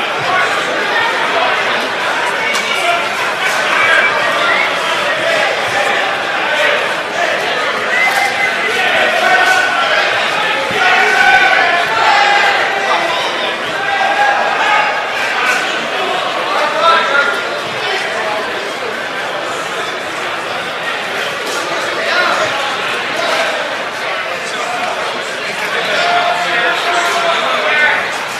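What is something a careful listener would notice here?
A large crowd of men and women chatters loudly in an echoing hall.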